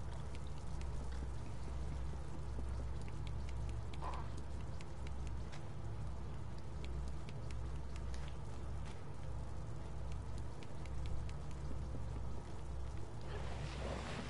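Small footsteps patter softly across a wooden floor.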